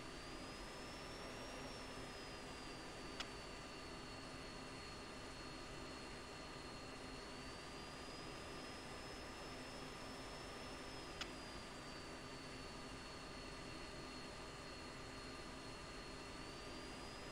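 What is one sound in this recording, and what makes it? A jet engine hums and whines steadily.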